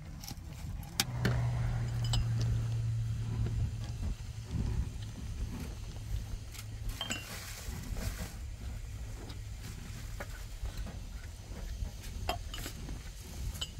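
Stones clink and scrape as a woman scrubs a pan.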